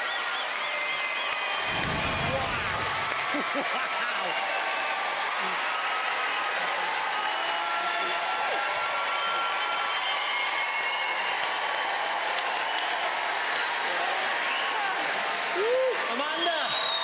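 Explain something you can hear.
A large crowd cheers and screams loudly in a big echoing hall.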